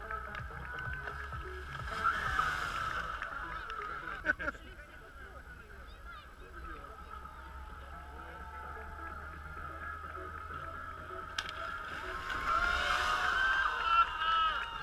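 A skier splashes across a pool of water.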